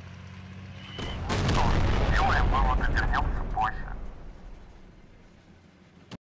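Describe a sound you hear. A large explosion roars and debris clatters down.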